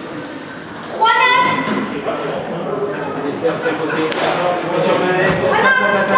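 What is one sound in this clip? Sneakers squeak sharply on a wooden court floor.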